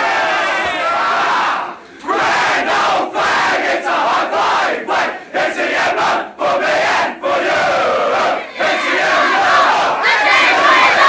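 A group of young men sing loudly together, shouting the words close by.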